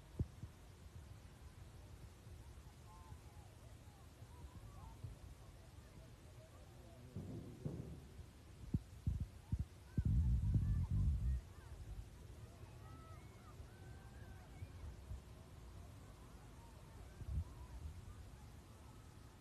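Young women shout and call out faintly across an open field.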